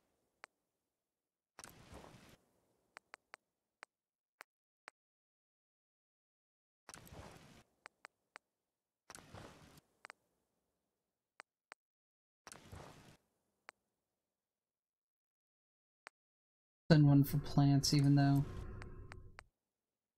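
Soft electronic menu clicks tick as options are selected.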